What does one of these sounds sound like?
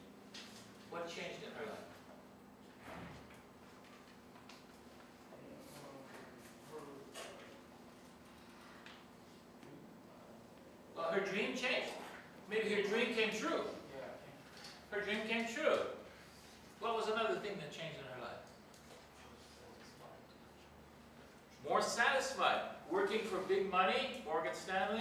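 An elderly man lectures loudly and with animation in a room with some echo.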